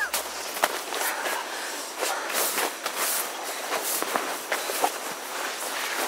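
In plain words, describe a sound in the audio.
A sleeping bag rustles as it is pulled over someone.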